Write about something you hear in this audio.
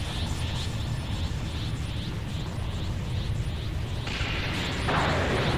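A glowing energy aura roars and crackles steadily.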